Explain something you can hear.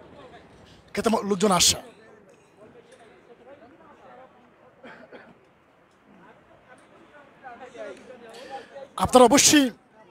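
A young man speaks loudly close by.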